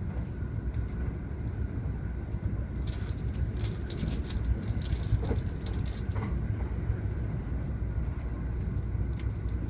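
Wind blows hard outdoors, rustling through leafy plants.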